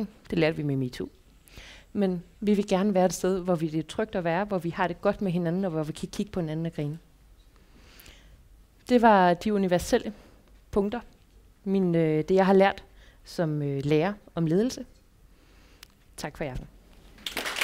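A young woman speaks with animation into a microphone to an audience.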